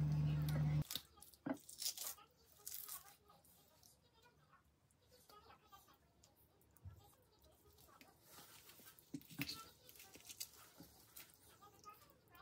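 Wet raw meat squelches softly in hands.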